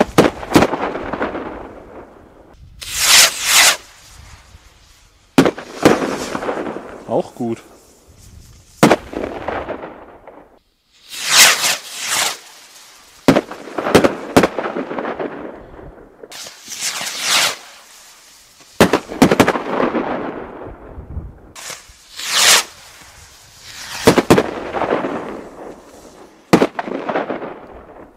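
Fireworks crackle and fizzle after bursting.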